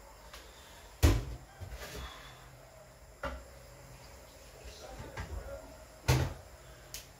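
Glass clinks as a bottle is set down on a counter.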